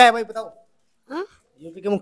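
A young boy answers into a microphone.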